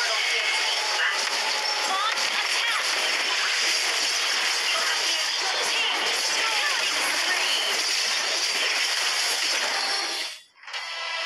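Game battle effects whoosh, zap and clash rapidly.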